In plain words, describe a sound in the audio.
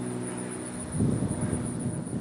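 A cricket bat knocks a ball far off across an open field.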